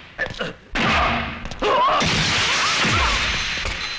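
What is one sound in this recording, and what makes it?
Furniture clatters and scrapes as a man falls onto it.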